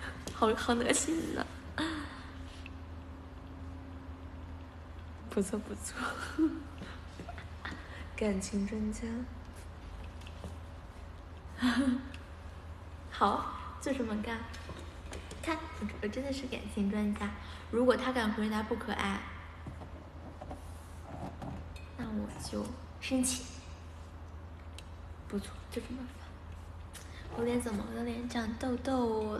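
A young woman talks cheerfully and close up, in short bursts with pauses.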